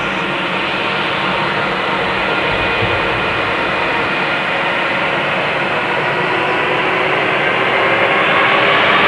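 Jet engines whine and roar steadily.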